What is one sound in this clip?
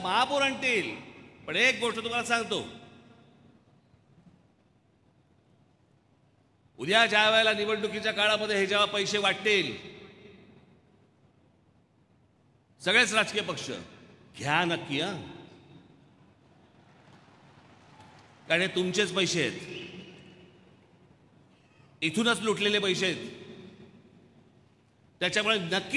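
A middle-aged man speaks forcefully through a microphone and loudspeakers, in short bursts with pauses, echoing in a large hall.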